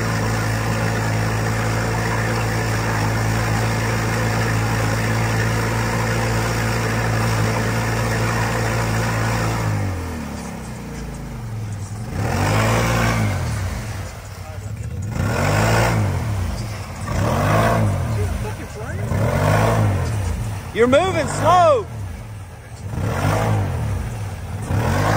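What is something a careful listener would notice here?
Muddy water splashes and churns around a vehicle's wheels.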